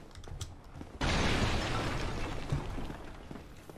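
Armour rattles as a figure rolls across a stone floor.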